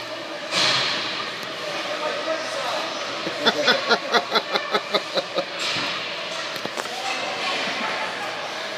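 Skate blades scrape across ice.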